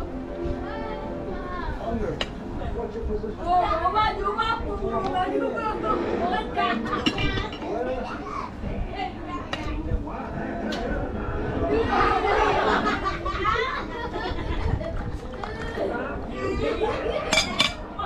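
Plastic bowls knock against each other.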